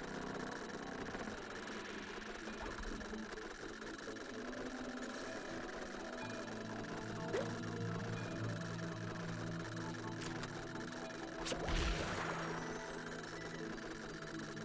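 Eerie electronic game music plays steadily.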